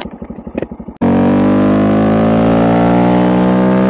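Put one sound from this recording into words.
A motorcycle accelerates along a road, its engine climbing in pitch.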